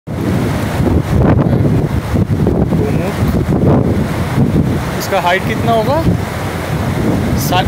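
Wind blows and rumbles against the microphone outdoors.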